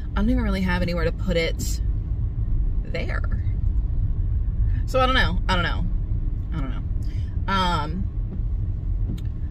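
A car engine rumbles low and steady inside the cabin.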